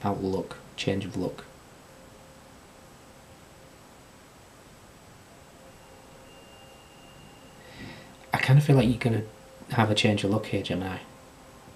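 A man speaks calmly and close, as if through a computer microphone, with long pauses.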